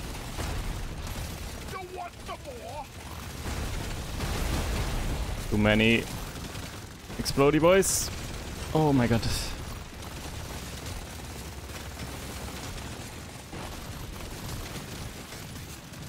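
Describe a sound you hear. Rapid gunfire rattles steadily.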